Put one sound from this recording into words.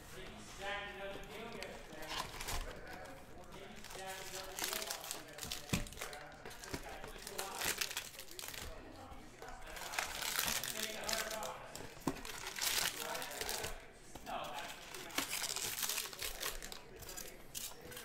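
Hands tear open a cardboard box.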